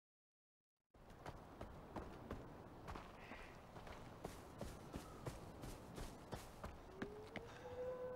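Footsteps tread steadily on grass and wooden boards.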